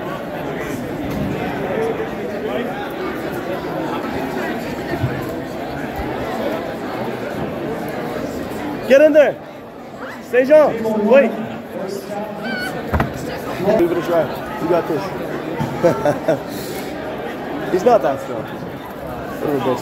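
A crowd of young people chatters in a large echoing hall.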